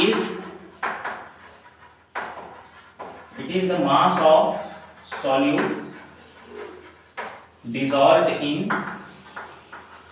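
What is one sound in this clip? A man speaks clearly, explaining at a steady pace.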